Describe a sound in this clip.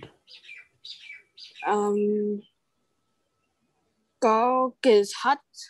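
A woman speaks slowly and clearly into a microphone, drawing out sounds.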